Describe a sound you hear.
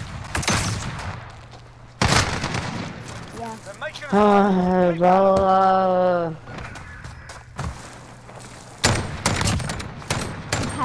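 Gunfire bursts out in rapid, loud cracks.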